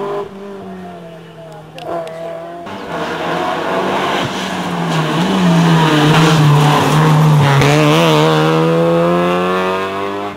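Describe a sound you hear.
A rally car engine revs hard, growing louder as the car approaches and passes close by.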